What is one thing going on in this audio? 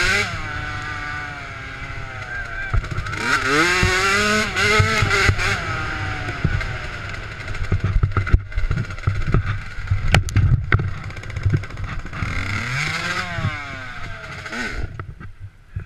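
A dirt bike engine revs hard and rises and falls in pitch.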